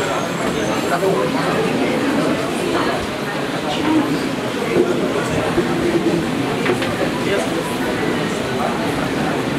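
A crowd murmurs and chatters.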